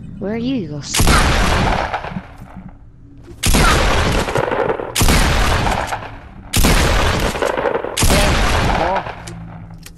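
A gun fires several loud, roaring blasts.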